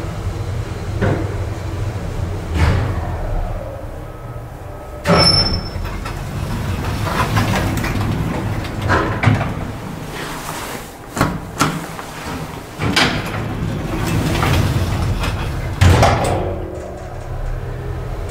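An elevator motor hums steadily.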